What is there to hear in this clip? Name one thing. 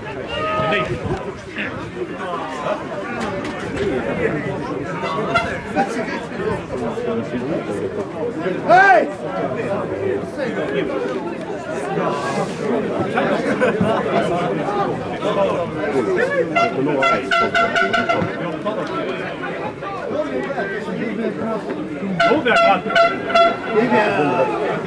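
Male players shout to each other across an open pitch.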